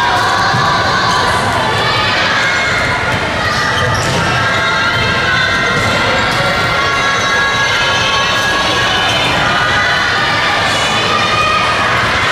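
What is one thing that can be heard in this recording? Balls bounce on a wooden floor.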